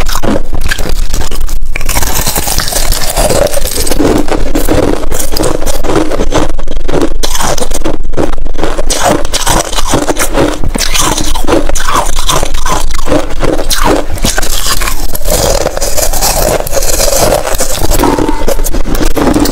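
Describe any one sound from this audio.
Ice crunches and cracks loudly up close as a young woman bites it.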